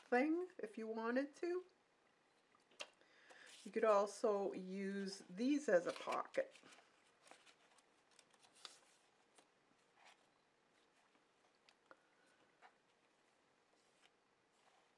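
Paper rustles and creases softly as it is folded and smoothed.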